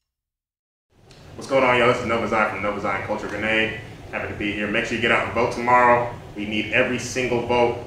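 A young man speaks with feeling into a microphone.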